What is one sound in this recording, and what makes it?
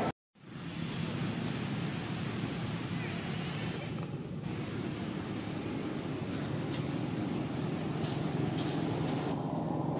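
A small monkey rustles through dry leaves and grass.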